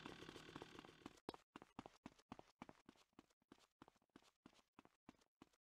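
Footsteps run quickly on pavement.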